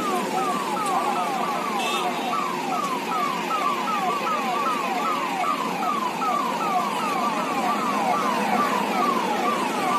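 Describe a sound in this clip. A siren wails with fast, repeating falling sweeps as it approaches.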